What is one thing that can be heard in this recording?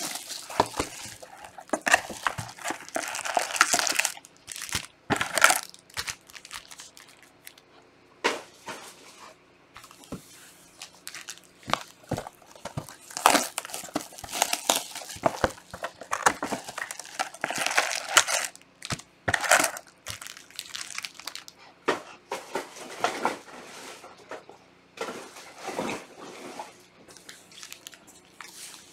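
Card packs tap and shuffle against each other.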